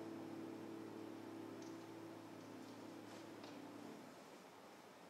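A piano's last notes ring softly and fade away.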